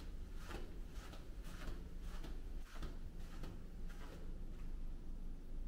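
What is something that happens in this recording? Footsteps walk steadily along a carpeted hallway.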